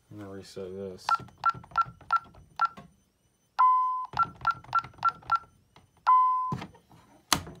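An alarm keypad beeps as its buttons are pressed.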